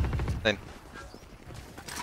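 Gunfire from a video game rattles.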